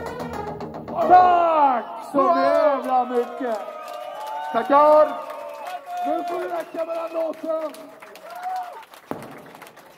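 A man shouts and sings loudly into a microphone over loudspeakers.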